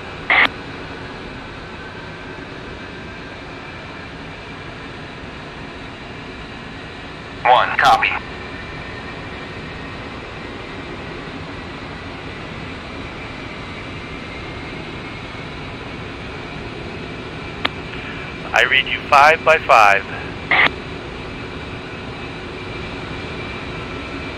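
A jet engine hums steadily in the background.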